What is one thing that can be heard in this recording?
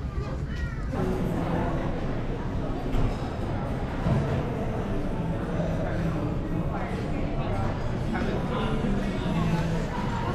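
Many diners chatter at once in a large room.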